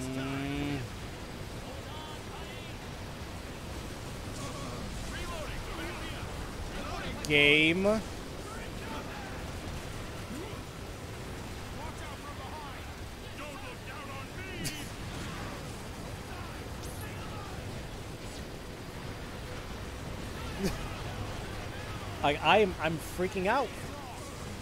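Explosions rumble and boom in a battle.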